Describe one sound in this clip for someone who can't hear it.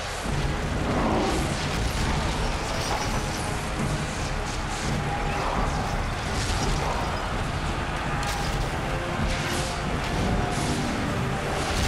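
A burst of fire roars.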